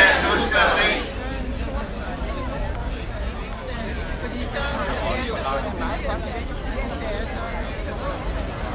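A crowd murmurs softly outdoors.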